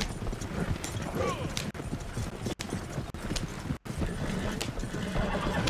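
A wagon rolls and rattles over rough ground.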